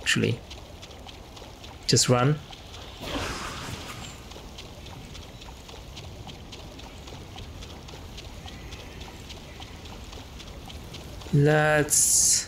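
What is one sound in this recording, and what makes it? Water splashes as a figure wades through a shallow stream.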